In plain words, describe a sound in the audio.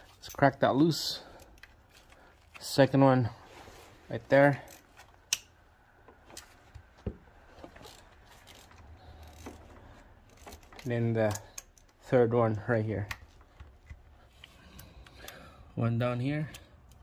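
Metal tools clink against an engine.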